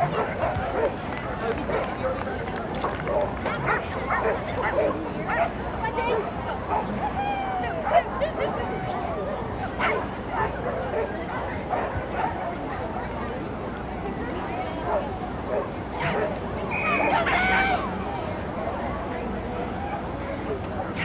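A woman calls out commands to a dog.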